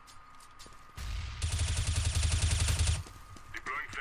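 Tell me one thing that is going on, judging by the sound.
A submachine gun fires a rapid burst at close range.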